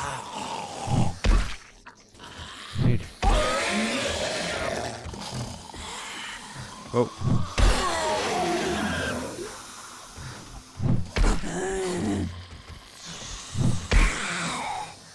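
Heavy blows thud hard, one after another.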